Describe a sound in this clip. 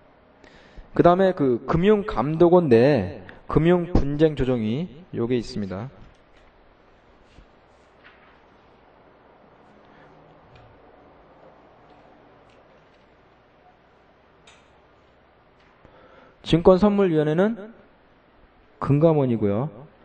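A man lectures calmly through a microphone, in bursts with pauses.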